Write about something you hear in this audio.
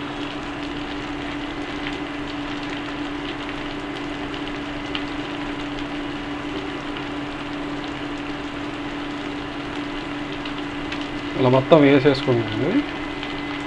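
Hands toss sliced vegetables in a metal pan with a soft rustle.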